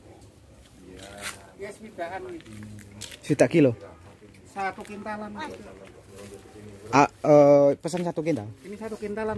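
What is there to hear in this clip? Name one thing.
Women talk casually nearby, outdoors.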